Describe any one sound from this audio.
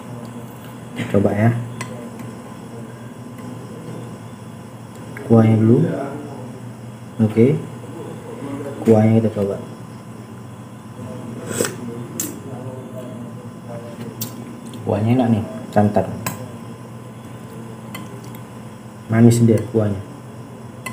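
A man speaks calmly in short bursts close to the microphone.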